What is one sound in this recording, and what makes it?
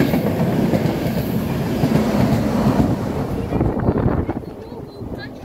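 A train rushes past close by with a loud rumbling roar.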